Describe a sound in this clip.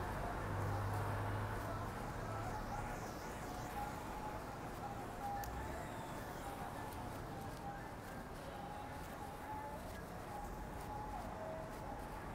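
Cars drive past with tyres hissing on the road.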